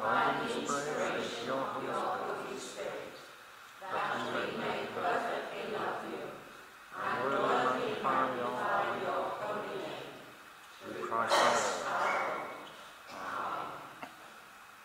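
A woman speaks calmly through a microphone in a large echoing hall.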